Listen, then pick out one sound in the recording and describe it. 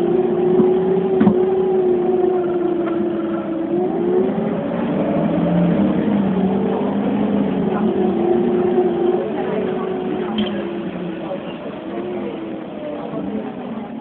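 Rain patters on a window.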